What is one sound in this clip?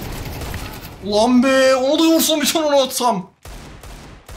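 A young man shouts loudly close to a microphone.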